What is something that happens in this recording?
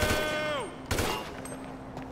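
A single gunshot bangs sharply.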